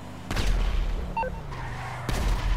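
Phone menu beeps sound briefly.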